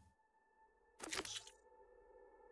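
A game menu clicks softly as an item is selected.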